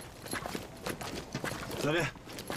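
Boots crunch on gravel as men walk.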